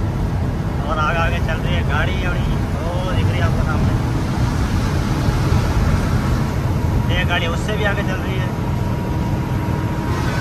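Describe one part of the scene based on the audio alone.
Heavy trucks roar past close by on a highway.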